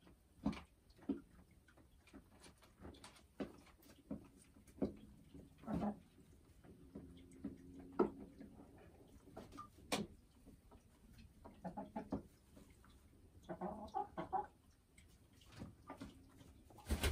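A hen clucks softly and croons close by.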